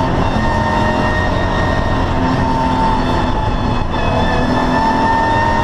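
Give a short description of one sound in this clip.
Wind and road noise rush steadily around the car.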